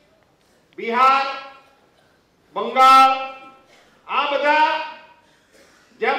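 An elderly man speaks forcefully into a microphone in loud bursts, with pauses between phrases.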